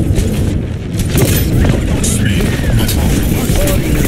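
A blast bursts with a sharp crack.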